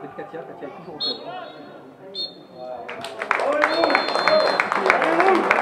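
A referee's whistle blows in short sharp blasts.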